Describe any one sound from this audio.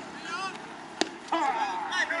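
A baseball bat cracks sharply against a ball once.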